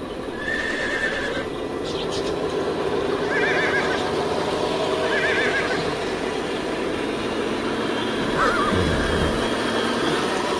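A small toy truck's electric motor whirs steadily.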